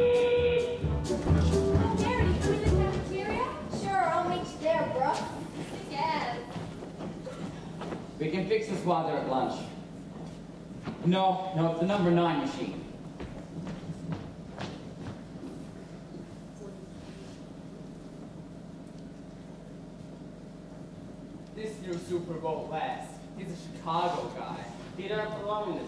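A young man speaks on stage, heard from far off in a large hall.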